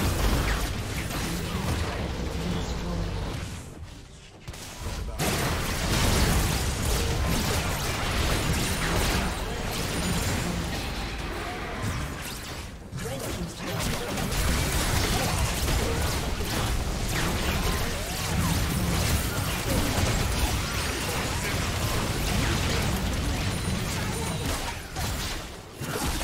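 Game spell effects crackle and blast during a fight.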